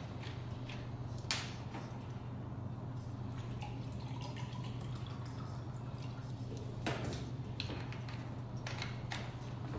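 A bottle cap twists open.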